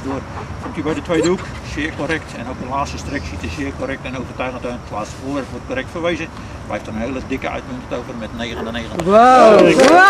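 An older man talks calmly, close by, outdoors.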